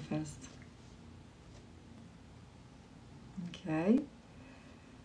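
A young woman speaks briefly and softly, close by.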